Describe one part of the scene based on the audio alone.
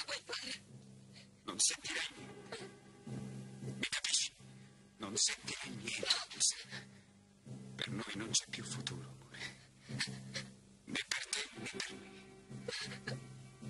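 A young woman speaks in a distressed voice close by.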